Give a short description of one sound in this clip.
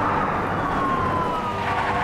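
A car drives slowly toward the listener, its engine humming.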